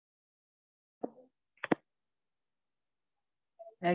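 A woman speaks in short bursts over an online call.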